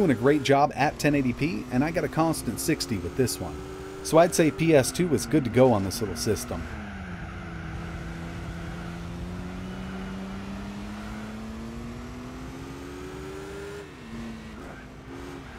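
A racing car engine drones steadily, its pitch shifting slowly with gear changes.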